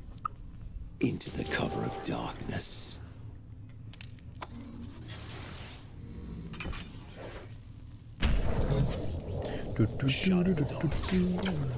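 Electronic energy blasts burst and crackle.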